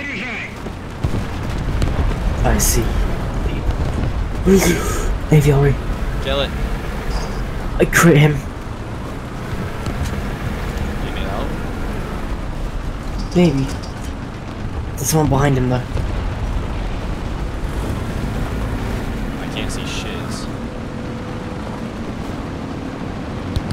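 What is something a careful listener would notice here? A heavy tank engine rumbles low and steadily.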